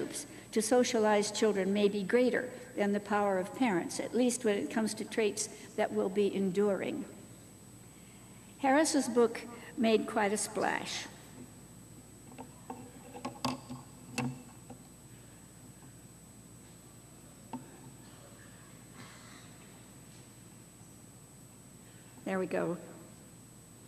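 An elderly woman speaks calmly into a microphone, with pauses.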